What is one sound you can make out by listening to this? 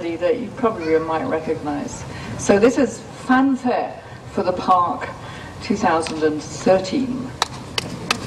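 A woman speaks calmly into a microphone in an echoing hall.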